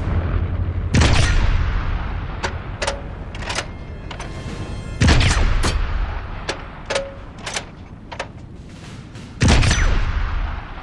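A rifle fires loud, booming shots that echo away.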